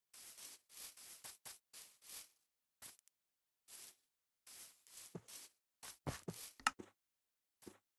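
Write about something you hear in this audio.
Footsteps rustle on grass.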